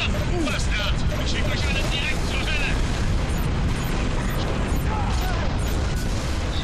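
Deep battle noise rumbles steadily.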